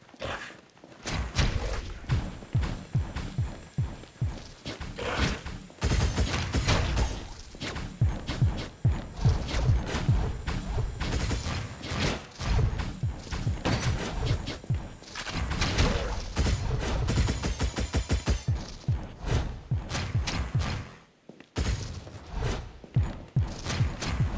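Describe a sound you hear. Blades slash in quick, sharp bursts.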